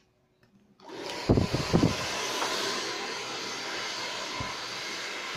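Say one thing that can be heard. A hair dryer blows with a steady roar close by.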